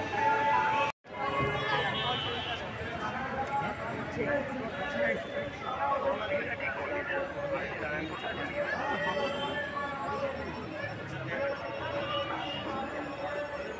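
A large crowd chatters outdoors, with many men and women talking at once nearby.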